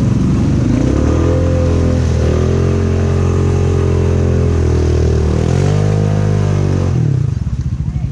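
An all-terrain vehicle engine revs loudly up close, rising and falling in pitch.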